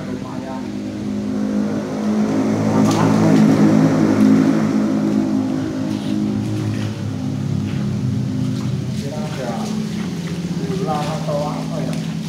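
A river flows and rushes, echoing under a bridge.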